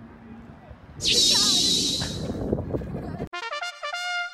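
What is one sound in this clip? A young boy shouts with joy outdoors.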